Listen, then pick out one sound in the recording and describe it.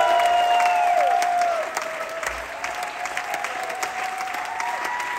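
A big band's saxophones and brass play a swinging tune.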